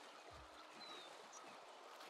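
Water splashes as someone wades through a stream.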